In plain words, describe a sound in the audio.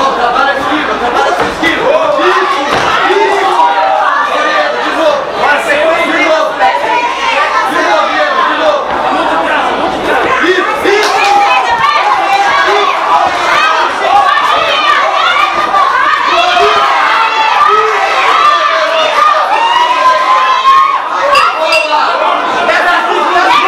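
A crowd shouts and cheers loudly.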